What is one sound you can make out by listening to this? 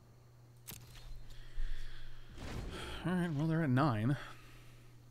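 A middle-aged man speaks casually into a close microphone.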